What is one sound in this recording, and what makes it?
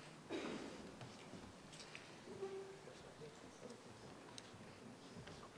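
A woman speaks calmly into a microphone in a large echoing room.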